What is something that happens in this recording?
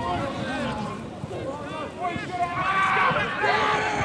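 A man calls out close by.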